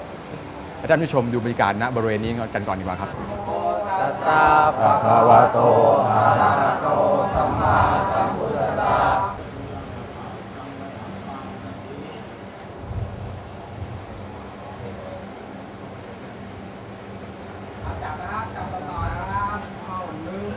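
An elderly man chants in a steady voice close by.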